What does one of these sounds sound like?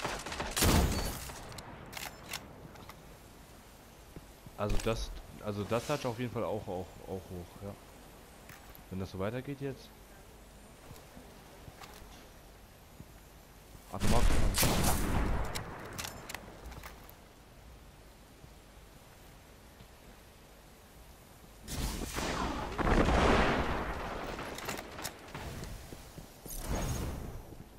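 Gunshots crack loudly in short bursts.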